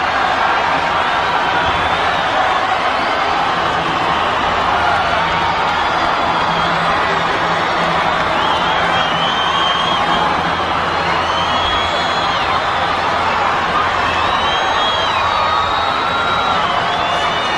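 A huge crowd cheers and screams loudly in an open stadium.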